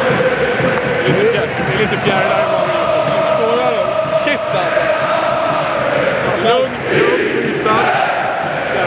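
A middle-aged man speaks excitedly close by.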